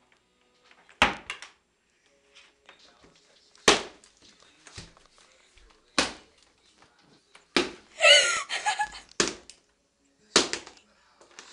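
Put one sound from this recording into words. A shoe slaps hard on a rug over a wooden floor.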